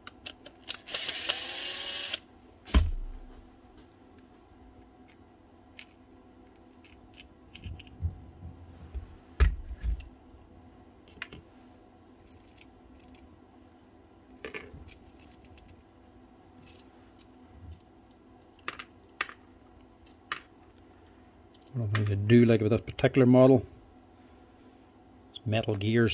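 Plastic and metal parts click and clatter as they are handled.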